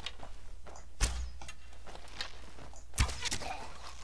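A bow twangs as an arrow is loosed.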